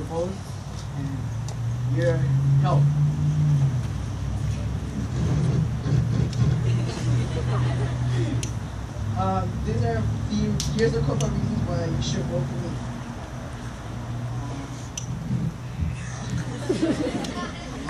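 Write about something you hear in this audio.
A boy speaks into a microphone over a loudspeaker outdoors.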